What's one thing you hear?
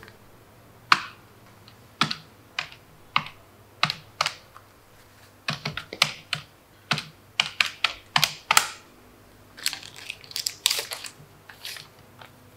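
Keys click on a small handheld machine.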